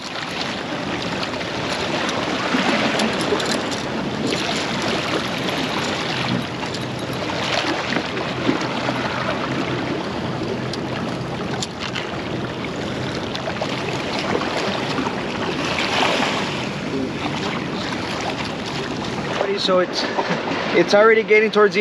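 Small waves splash against rocks close by, with wind blowing.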